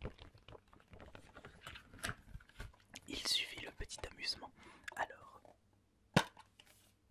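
A cardboard sleeve slides off a case.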